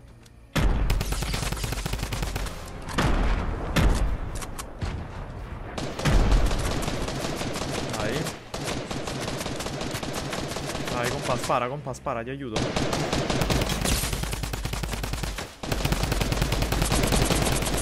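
Gunfire from a game rifle cracks in quick bursts.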